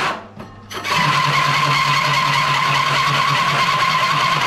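A hole saw grinds loudly into wood.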